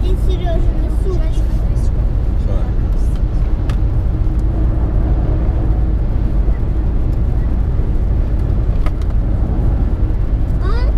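Road noise rumbles steadily from inside a car driving fast on a highway.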